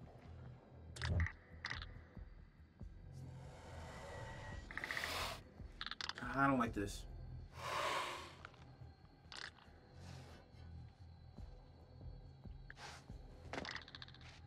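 Boots scrape and step on rock.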